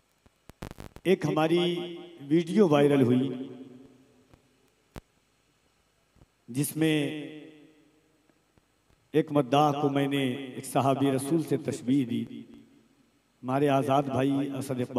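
A young man sings or recites melodically into a microphone, heard through loudspeakers with echo.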